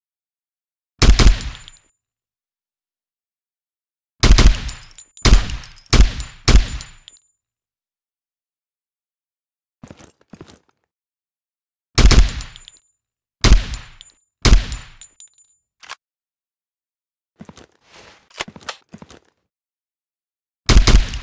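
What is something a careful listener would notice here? Heavy rifle shots boom one after another, each with a short echoing tail.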